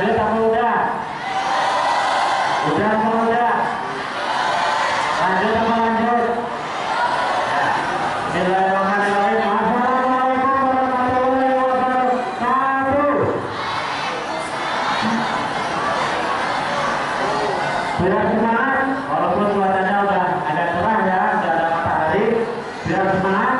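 A man speaks loudly over a loudspeaker, outdoors.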